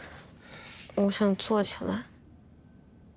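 A young man speaks softly, close by.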